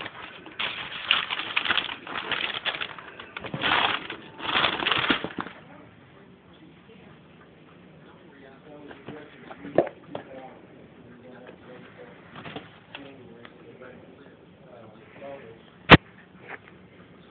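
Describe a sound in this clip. A cardboard box scrapes and thumps as it is handled.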